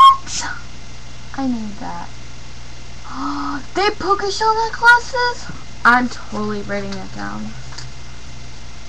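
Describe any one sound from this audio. A teenage girl talks with animation close to a microphone.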